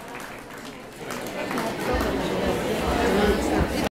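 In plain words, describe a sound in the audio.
A group of men and women laugh and chatter.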